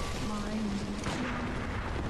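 A gun fires with a sharp blast.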